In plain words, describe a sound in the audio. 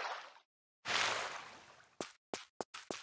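Water splashes briefly.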